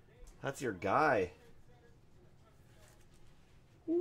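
A plastic card sleeve rustles as a card slides in.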